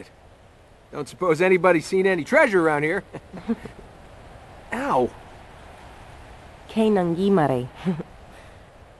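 A young man talks casually and laughs.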